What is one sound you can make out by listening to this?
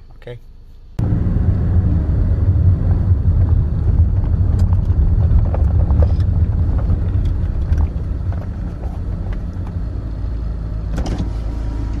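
A car engine rumbles steadily inside the car.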